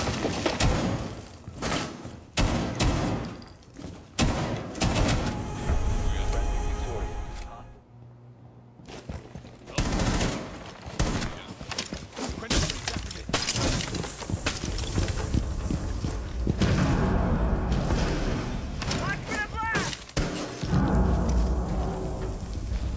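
Gunshots crack in sharp single bursts.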